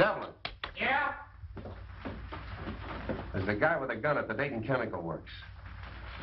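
A man speaks with animation into a telephone.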